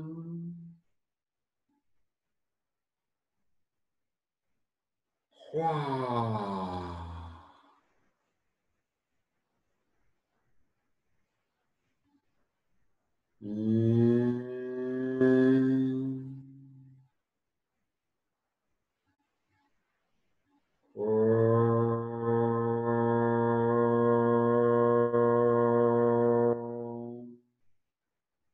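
A man sings long sustained vocal tones close by, with pauses between them.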